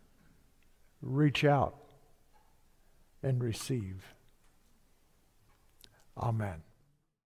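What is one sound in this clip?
An elderly man speaks slowly and expressively through a microphone, with long pauses.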